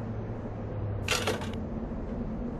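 A bright chime rings out once.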